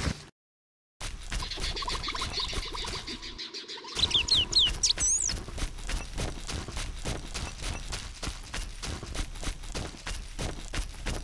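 Footsteps swish steadily through tall dry grass.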